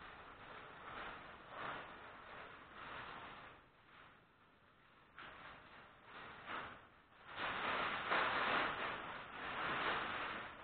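A large sheet of paper rustles and crinkles as it is handled.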